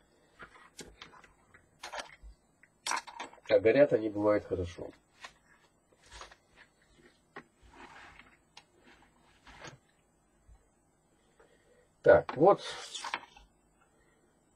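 Small plastic and metal parts click and clatter on a hard surface.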